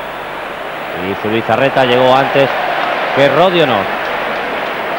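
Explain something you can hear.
A stadium crowd chants loudly in unison.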